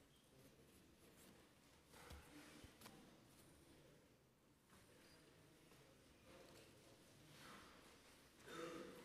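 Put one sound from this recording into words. A crowd of men and women murmurs quietly in a large echoing hall.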